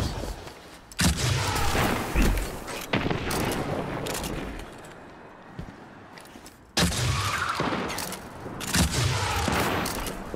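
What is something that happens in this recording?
A heavy gun fires in loud bursts.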